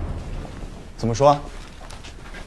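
A man speaks briefly and questioningly, close by.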